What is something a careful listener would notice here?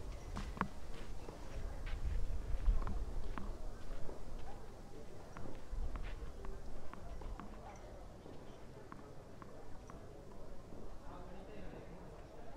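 A tennis ball bounces repeatedly on a clay court.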